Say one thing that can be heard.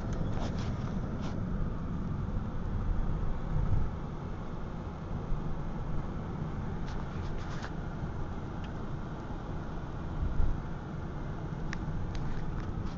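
A car engine hums steadily inside the cabin.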